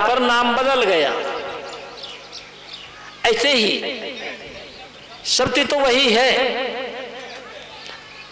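An elderly man sings in a slow chant through a microphone and loudspeakers, with echo.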